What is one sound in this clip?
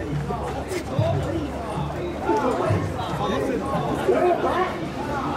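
A crowd of men chant loudly and rhythmically close by, outdoors.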